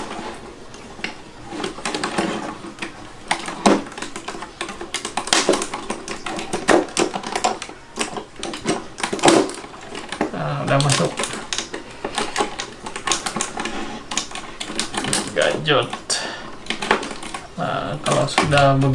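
Plastic toy parts click and clatter as they are fitted together.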